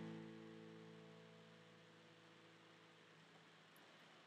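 An acoustic guitar chord rings out and slowly fades.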